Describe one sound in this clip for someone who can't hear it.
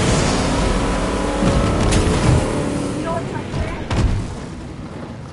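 A boat engine roars.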